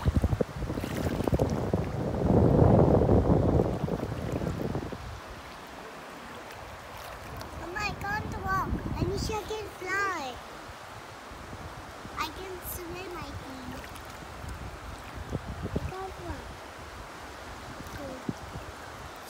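Shallow water laps gently.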